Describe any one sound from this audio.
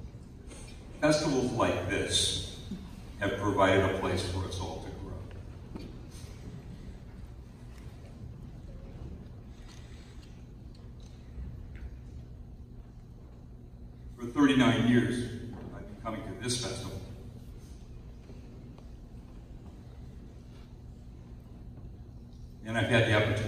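A man speaks slowly into a microphone over loudspeakers, echoing through a large hall.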